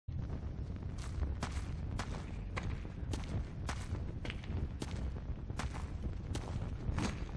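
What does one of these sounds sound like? Footsteps crunch on rocky ground at a steady walking pace.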